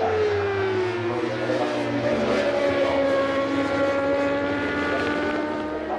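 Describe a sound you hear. A race car engine roars loudly as the car speeds by.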